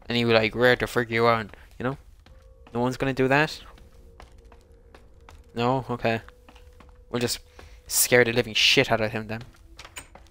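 Footsteps clatter on a wooden ladder.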